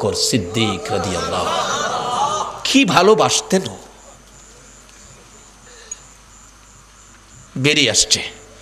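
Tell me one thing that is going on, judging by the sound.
A man speaks loudly and with emotion into a microphone, with pauses, in a large echoing space.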